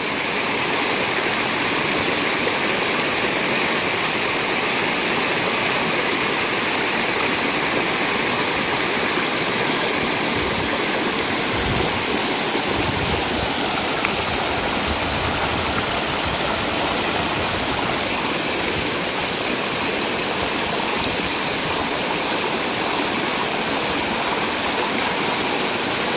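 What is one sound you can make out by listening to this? Steam hisses loudly from vents in the ground.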